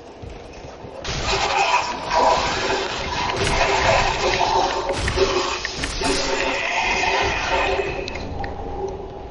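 Sword blows slash and clash in a fight.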